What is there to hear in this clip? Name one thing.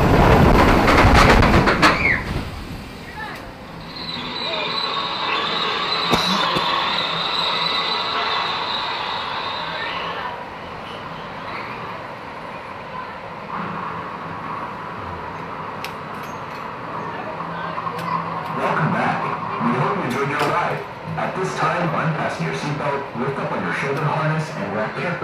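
A roller coaster train rumbles and clatters slowly along its track.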